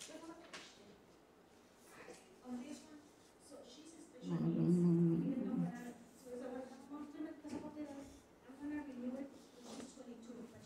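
A woman speaks quietly and hesitantly, close by.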